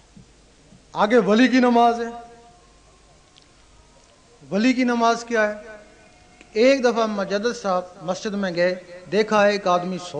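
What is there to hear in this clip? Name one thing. An elderly man chants loudly in bursts through a loudspeaker.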